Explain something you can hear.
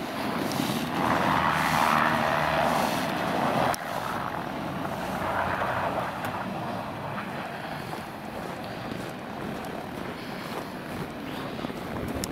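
Tyres crunch and spin on packed snow.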